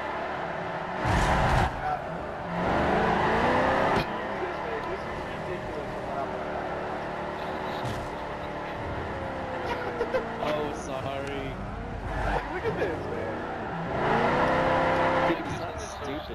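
Tyres squeal and skid as a van slides through corners.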